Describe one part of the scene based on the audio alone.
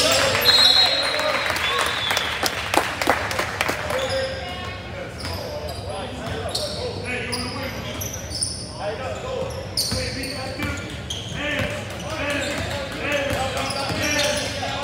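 Sneakers squeak sharply on a hardwood court, echoing in a large gym.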